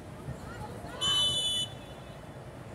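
A referee's whistle blows once sharply.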